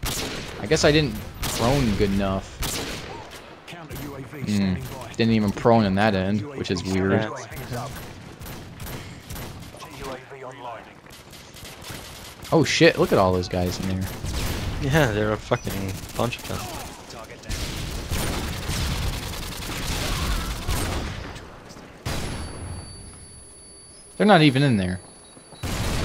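Rifle shots crack loudly.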